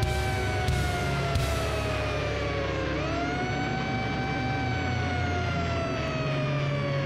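An electric guitar holds a long, loud note that bends down and back up.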